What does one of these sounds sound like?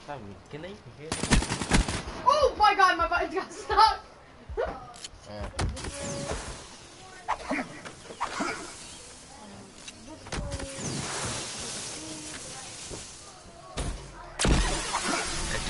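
Rapid gunfire cracks in short bursts.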